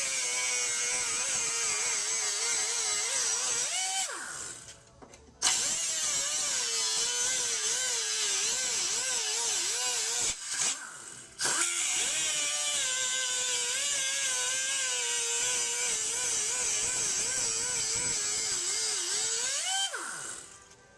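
An air-powered grinder whines loudly as it cuts into metal, dipping and rising in pitch.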